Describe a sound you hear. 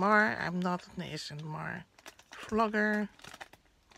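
Scissors snip through thin plastic.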